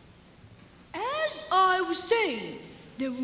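A young woman sings loudly on stage.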